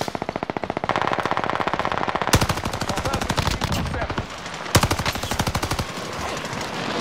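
An automatic rifle fires rapid bursts of shots close by.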